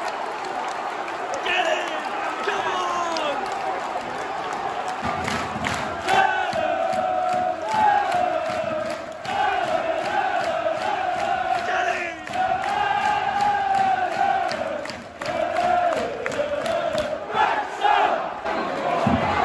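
Fans close by clap their hands in rhythm.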